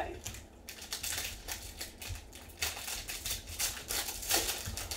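A plastic wrapper crinkles and tears.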